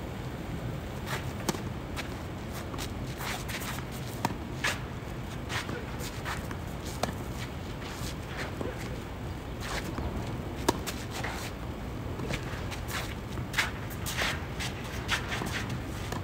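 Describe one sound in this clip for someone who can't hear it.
A tennis ball is struck with a racket, back and forth in a rally, outdoors.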